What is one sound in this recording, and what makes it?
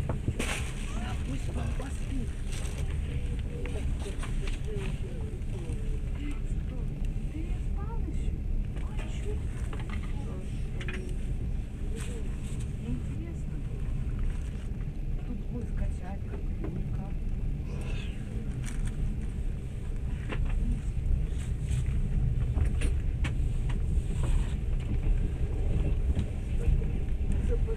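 Train wheels click and clatter over rail joints.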